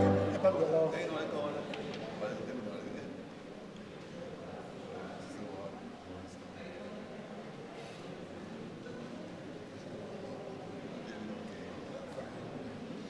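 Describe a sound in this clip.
A crowd of adults murmurs and talks quietly in an echoing room.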